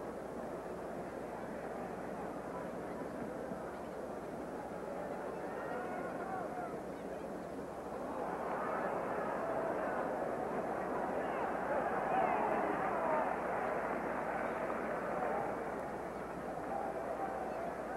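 A large stadium crowd murmurs and cheers, growing louder as play moves forward.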